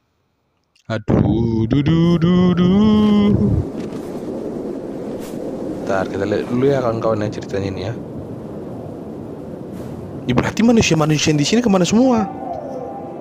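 A man speaks with emotion close by.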